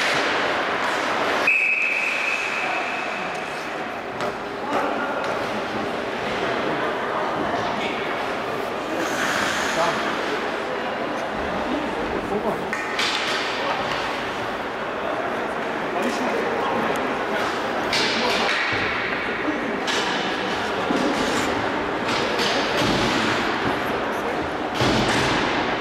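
Skates scrape and hiss across ice.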